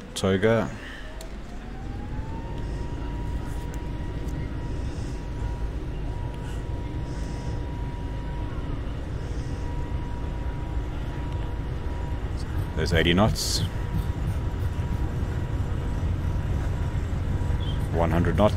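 Jet engines spool up with a rising whine and then hold a steady roar.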